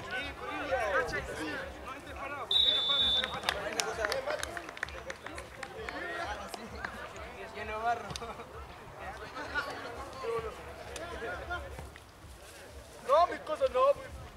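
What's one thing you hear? Men shout and call out to each other across an open field.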